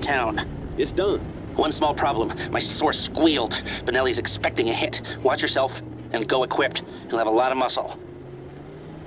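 A man talks calmly on a phone.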